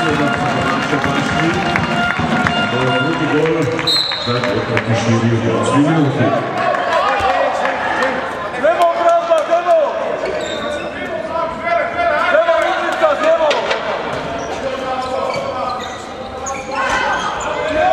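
A crowd of spectators murmurs and calls out.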